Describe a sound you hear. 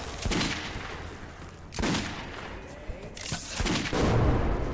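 A rifle fires several loud, echoing shots.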